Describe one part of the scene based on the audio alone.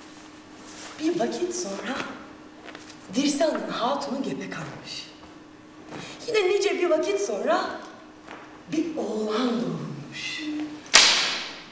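A young woman speaks expressively at a distance.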